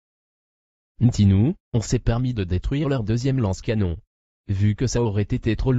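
Another man answers with animation, close to the microphone.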